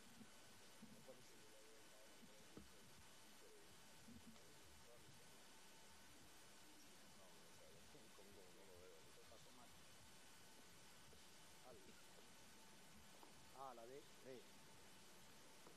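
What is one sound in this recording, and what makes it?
Several men talk quietly in the background outdoors.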